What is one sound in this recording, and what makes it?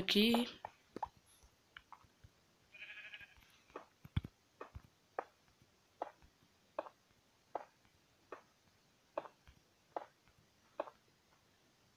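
Stone blocks land in place with short, dull taps.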